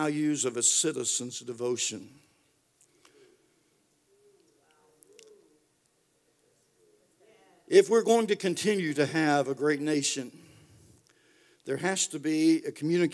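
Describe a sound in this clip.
A man speaks calmly and clearly through a microphone, pausing between phrases.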